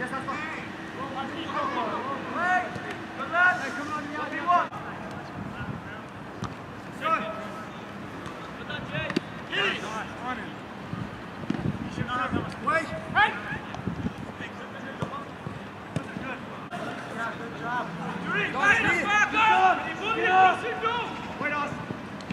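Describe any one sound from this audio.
Young men shout to each other outdoors, some close and some farther off.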